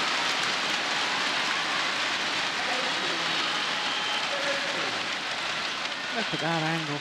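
A shuttlecock is struck sharply with a racket.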